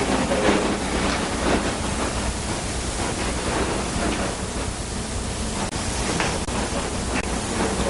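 Footsteps tap across a hard floor.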